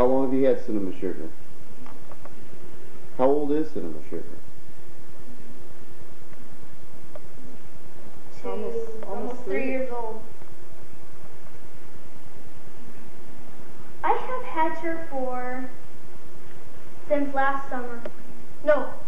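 A boy talks calmly close by, in short bursts.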